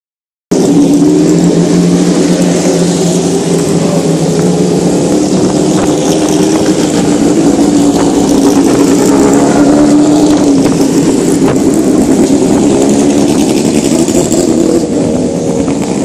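Single-seater racing cars accelerate hard away one after another.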